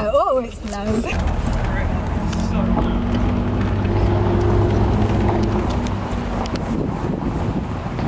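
A car engine hums steadily as the car drives slowly along.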